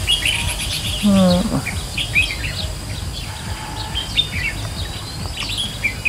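Small songbirds chirp and twitter in quick bursts close by.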